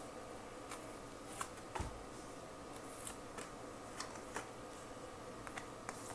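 Cards are laid down on a table with soft taps and slides.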